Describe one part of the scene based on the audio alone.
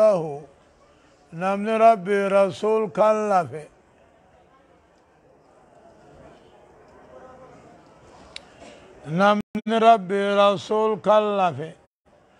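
An elderly man chants in a steady, melodic voice through a microphone in an echoing hall.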